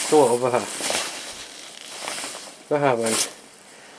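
Stiff fabric rustles close by.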